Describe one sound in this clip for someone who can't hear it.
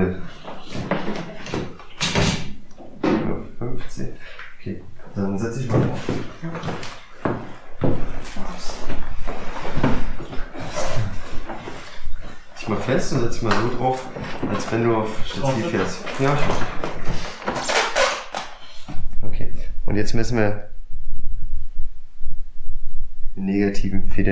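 A man talks calmly close by.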